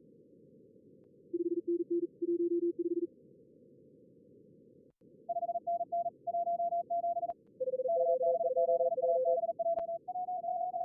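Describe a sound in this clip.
A low radio hiss runs steadily underneath.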